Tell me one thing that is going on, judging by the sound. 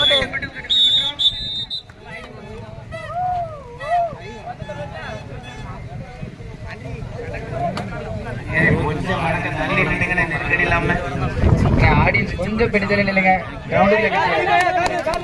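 A crowd of young men shouts and cheers loudly outdoors.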